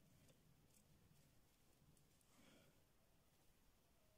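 Hands softly handle pieces of fruit close by.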